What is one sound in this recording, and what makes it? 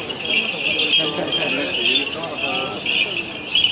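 Men chant together as they walk outdoors.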